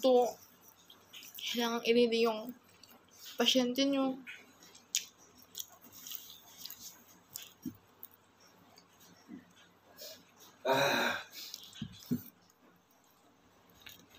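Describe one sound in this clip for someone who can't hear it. A young woman chews food with her mouth close to the microphone.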